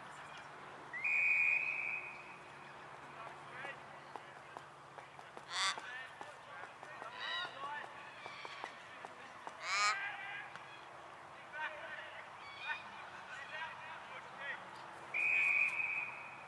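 A referee's whistle blows sharply outdoors.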